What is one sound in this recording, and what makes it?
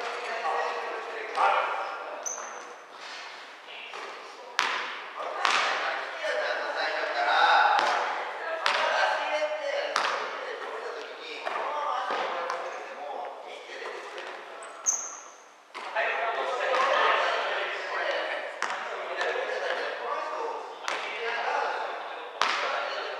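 Young men call out to each other.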